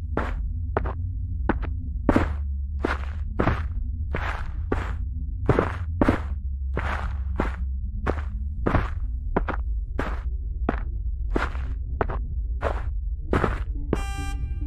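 Footsteps rustle steadily through dry grass and leaves.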